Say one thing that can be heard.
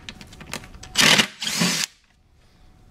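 A cordless drill whirs in short bursts, driving screws.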